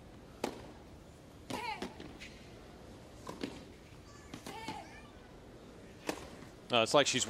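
A tennis ball is struck back and forth by rackets.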